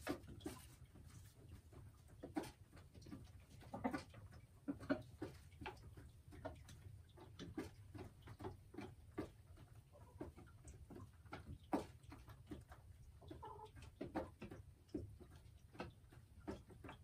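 A hen clucks softly and repeatedly close by.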